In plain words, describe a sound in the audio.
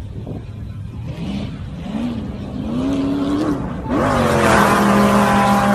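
An off-road buggy engine revs up and down in the distance, growing louder.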